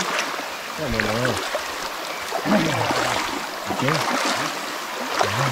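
Shallow water flows and ripples outdoors.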